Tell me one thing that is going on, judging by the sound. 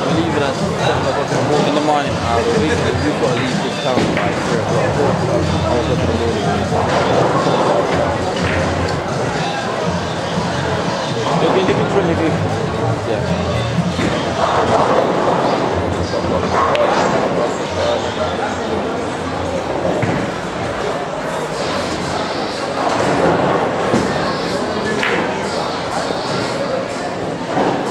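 Men talk casually in the background of a busy room.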